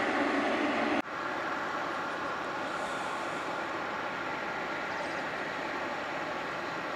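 A turboprop plane's engines hum from a distance.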